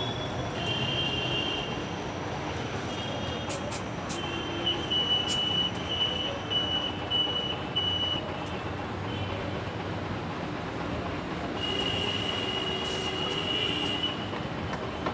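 A motorcycle engine idles close by.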